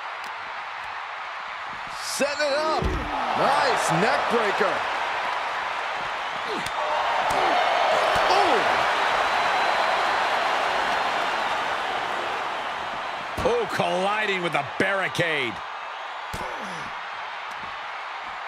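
A crowd cheers and roars loudly throughout.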